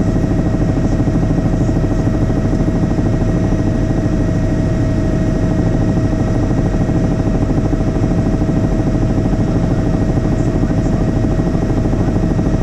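A helicopter's engine and rotor blades roar steadily and loudly from close by.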